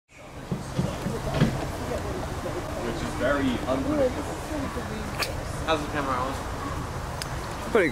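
Young men talk casually nearby, outdoors.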